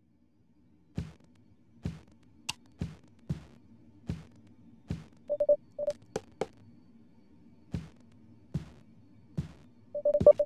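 Footsteps thud steadily across a floor.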